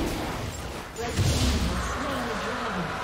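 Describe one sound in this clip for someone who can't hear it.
Game spell effects whoosh and crackle in a burst.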